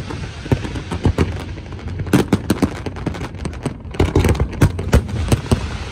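Fireworks bang and boom loudly, one after another.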